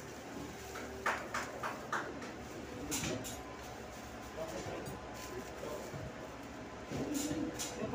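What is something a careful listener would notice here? Foil duct crinkles and rustles as it is handled.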